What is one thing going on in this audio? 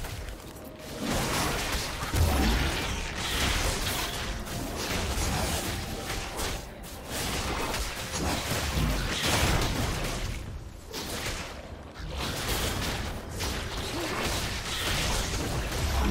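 Game battle effects whoosh, crackle and thud as fighters clash.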